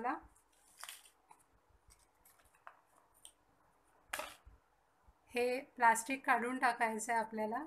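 Clear plastic crinkles softly as hands handle it.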